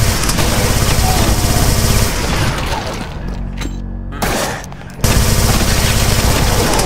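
A rapid-fire gun blasts in quick, steady bursts.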